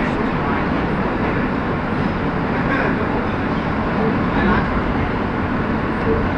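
A subway train rumbles and rattles loudly along the tracks.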